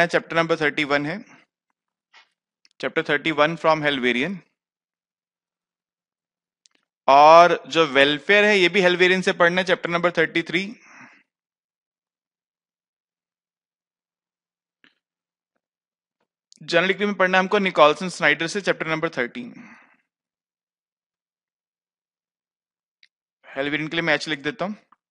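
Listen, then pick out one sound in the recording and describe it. A man lectures calmly into a headset microphone, pausing between phrases.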